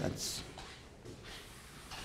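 A sponge wipes across a blackboard.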